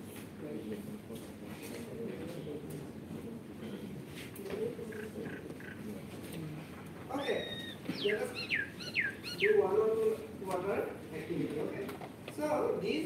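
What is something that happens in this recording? A crowd of students murmurs quietly.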